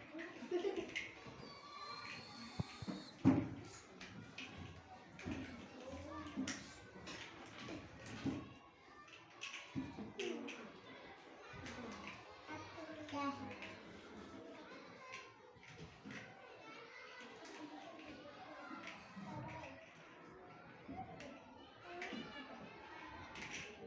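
Plastic toy blocks click and clatter together.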